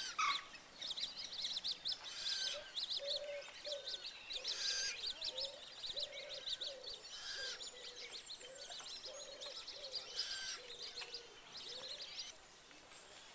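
A young water bird cheeps rapidly and repeatedly, close by.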